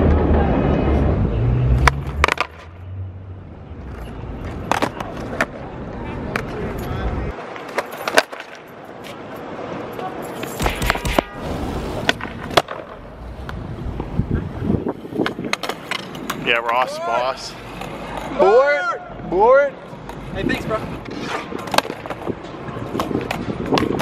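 A skateboard snaps and clatters against the ground.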